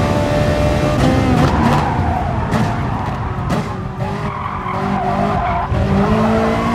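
A racing car engine drops in pitch as the car slows for a corner.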